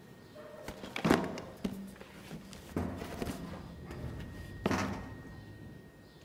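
Boxes thump down onto a wooden shelf.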